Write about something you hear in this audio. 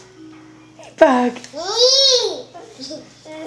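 A small child squeals with a high rising and falling cry.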